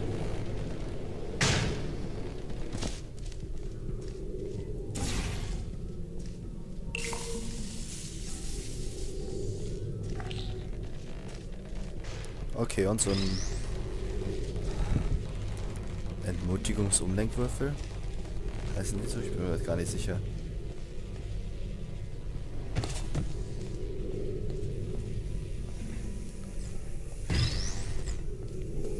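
A low electronic hum drones steadily.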